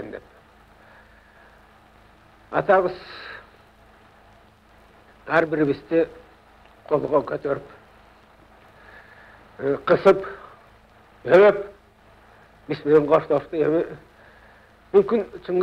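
A middle-aged man speaks slowly and calmly, in short phrases with long pauses.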